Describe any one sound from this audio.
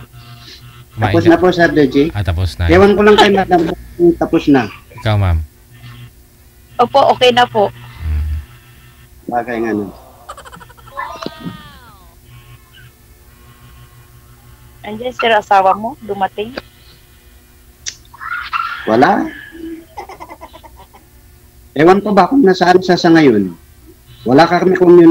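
A young man speaks casually over an online call.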